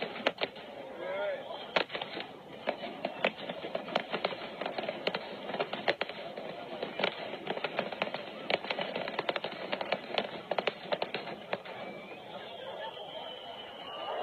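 Fireworks whistle as they shoot up.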